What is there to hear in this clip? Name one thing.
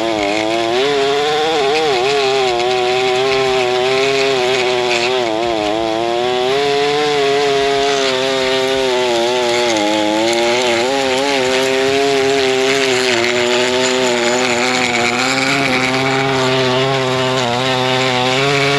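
A spinning edger blade scrapes through soil and grass.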